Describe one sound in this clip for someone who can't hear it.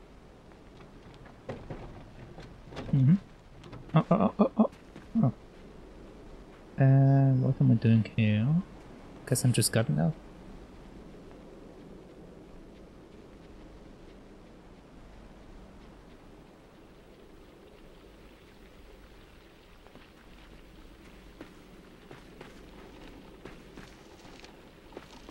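Light footsteps patter on wooden planks.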